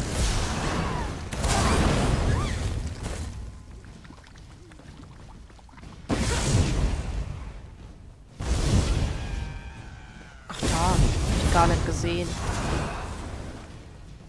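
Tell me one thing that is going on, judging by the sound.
Crackling lightning spells burst and zap in loud, sudden blasts.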